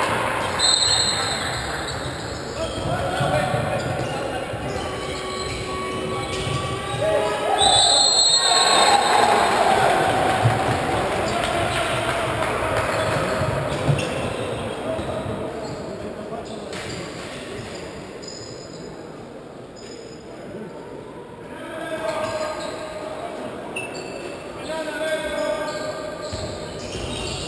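A crowd chants and cheers loudly in a large echoing hall.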